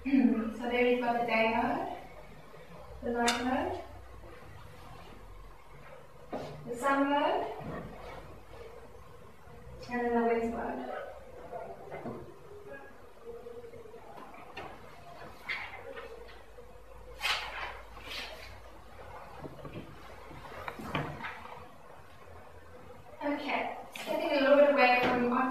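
A young woman speaks calmly, pausing often.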